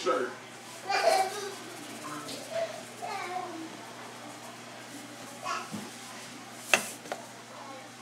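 Food is shaken into a metal pot with soft rattling.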